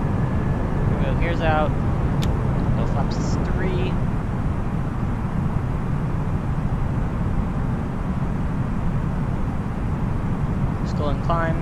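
A young man speaks into a headset microphone in short bursts.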